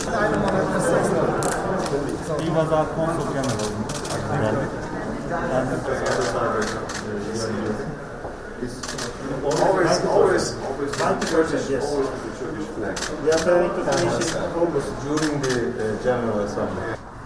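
Several men talk calmly nearby, overlapping one another.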